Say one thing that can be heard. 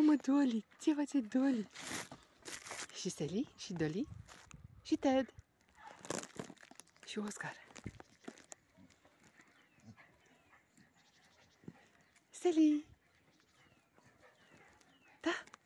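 Dogs yelp and bark while play fighting nearby.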